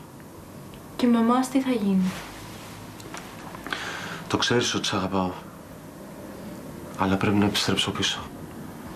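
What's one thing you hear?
A man speaks in a tense voice close by.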